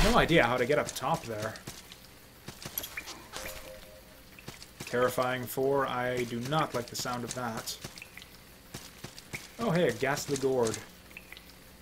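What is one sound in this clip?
A young man talks casually and animatedly into a close microphone.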